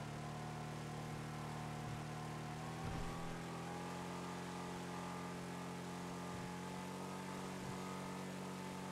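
A car engine hums steadily, its pitch slowly rising as it speeds up.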